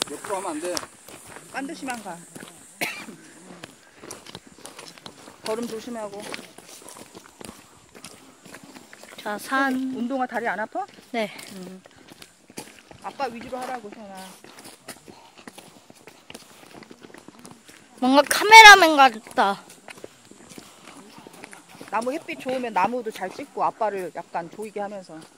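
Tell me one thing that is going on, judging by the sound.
Men talk nearby outdoors in short bursts.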